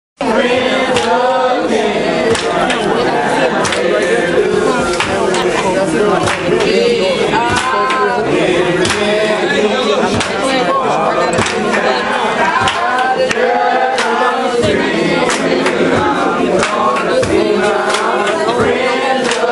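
A crowd of men and women sings loudly together.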